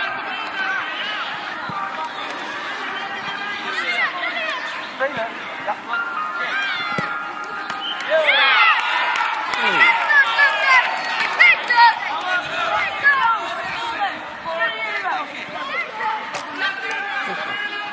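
Children shout excitedly across an open field.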